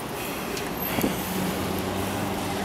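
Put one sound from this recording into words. A truck engine rumbles close by.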